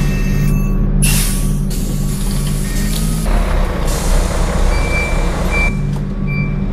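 Bus doors hiss open and shut.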